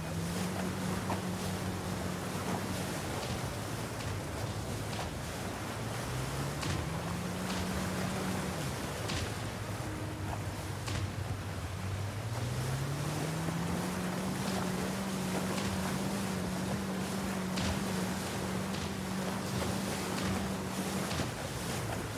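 A motorboat engine drones, rising and falling in pitch.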